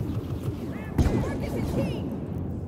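Sparks crackle from a blaster hit.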